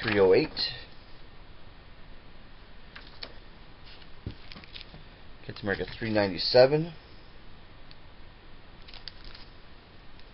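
A plastic sleeve crinkles as it is handled.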